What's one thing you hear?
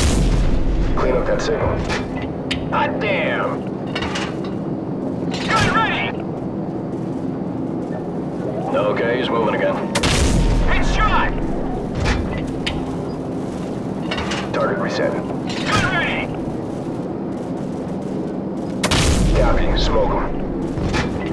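Heavy explosions boom and rumble.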